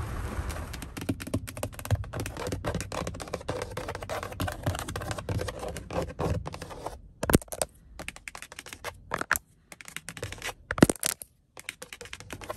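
Fingernails tap and scratch on a plastic door panel close by.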